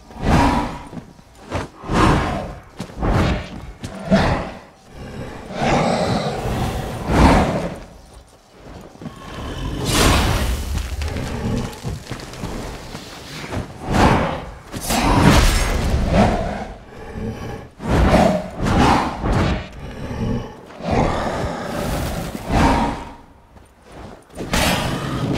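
Blades swing and strike in a fast, repeated fight.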